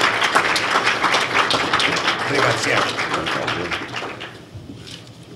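A crowd applauds in a large room, then the clapping dies away.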